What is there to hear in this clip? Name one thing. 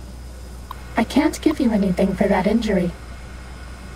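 An old computer terminal whirs and chirps as it starts up.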